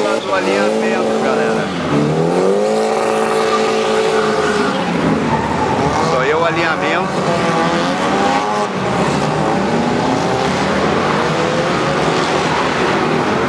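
Racing car engines roar and rev loudly.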